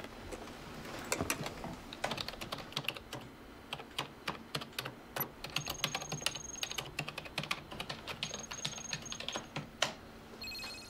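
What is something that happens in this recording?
Fingers tap quickly on a computer keyboard.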